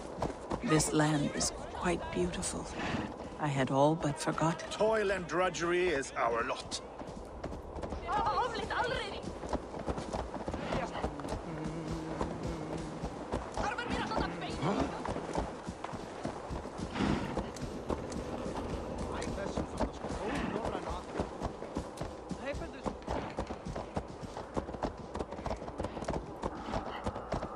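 Hooves crunch steadily on snow.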